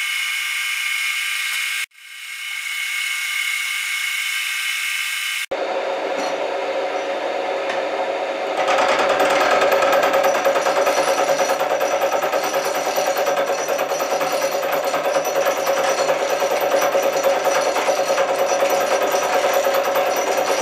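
A milling machine motor whirs steadily.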